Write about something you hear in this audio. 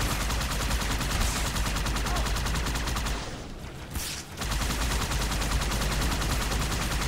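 A plasma gun fires in rapid bursts.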